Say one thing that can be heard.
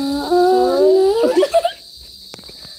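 Young women laugh close by.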